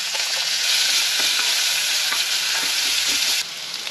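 A wooden spoon scrapes and stirs in a pan.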